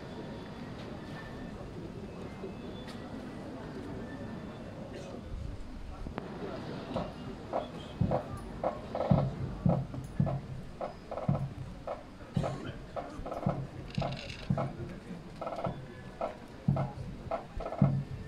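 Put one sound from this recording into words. A crowd murmurs in a large open hall.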